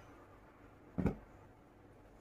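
A cushion thumps onto the floor.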